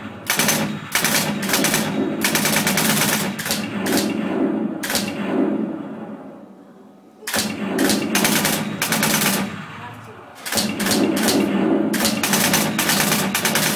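Rapid gunfire from a video game blasts loudly through speakers in bursts.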